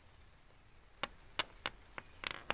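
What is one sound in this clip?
A die clatters and bounces on a board.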